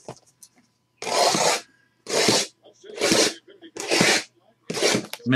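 Cardboard boxes scrape as they slide against each other.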